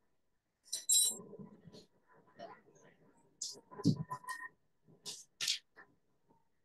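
Utensils clink and clatter.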